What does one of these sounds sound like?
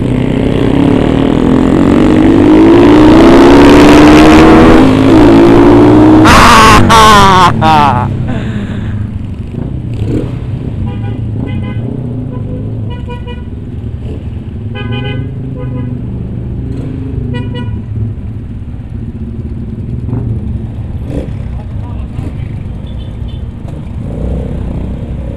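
A motorcycle engine rumbles up close throughout.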